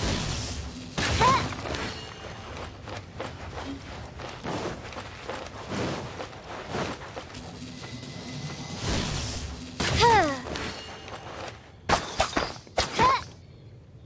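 Magic bursts crackle and boom.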